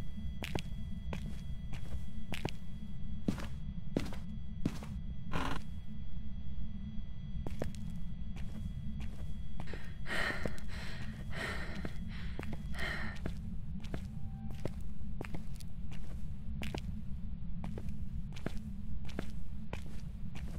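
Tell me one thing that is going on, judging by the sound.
Footsteps tap slowly and evenly on a hard floor.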